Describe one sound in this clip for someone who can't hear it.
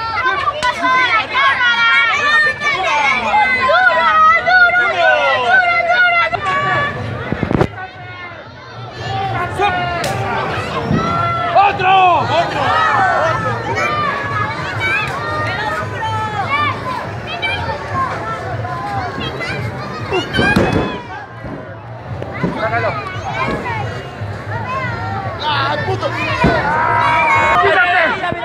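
A lively crowd shouts and cheers outdoors.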